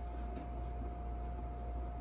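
A thick liquid pours into a cup.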